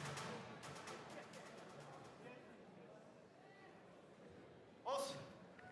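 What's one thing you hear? A crowd cheers and claps in a large hall.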